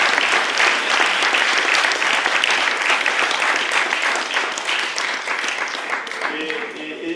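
An audience applauds with dense clapping.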